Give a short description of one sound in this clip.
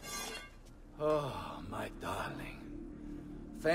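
A man speaks warmly with relief.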